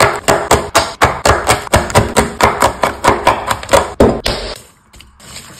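A knife chops rapidly through chocolate on a wooden board.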